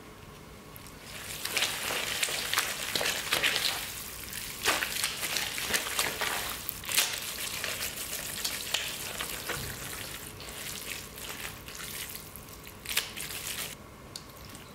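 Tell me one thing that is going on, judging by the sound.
Gloved hands squelch and slap through wet, sauce-coated noodles in a metal bowl.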